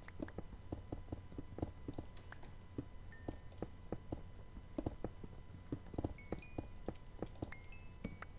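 A pickaxe taps repeatedly against stone.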